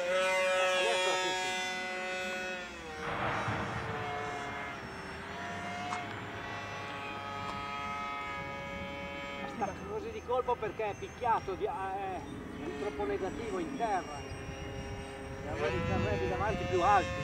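A small model aircraft's motor whines overhead, its pitch rising and falling as it flies.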